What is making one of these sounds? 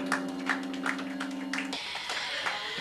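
An electric keyboard plays a sustained chord.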